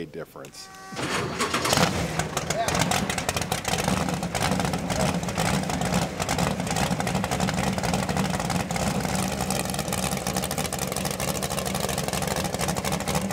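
A racing car engine roars loudly and rumbles at idle.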